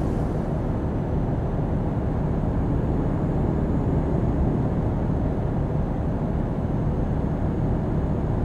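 Tyres roll on the road with a low, steady rumble.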